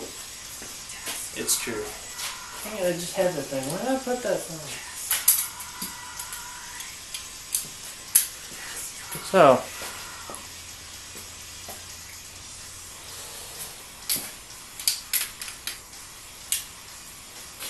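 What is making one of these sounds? Metal tools clink and tap against an engine block.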